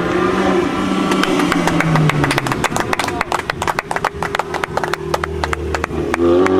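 A rally car's exhaust pops and crackles rapidly.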